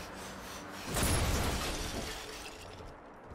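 Small fireballs whoosh past with a rushing burst.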